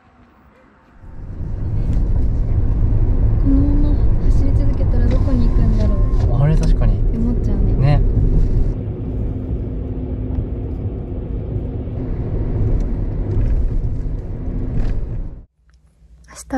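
A car engine hums and tyres rumble on the road.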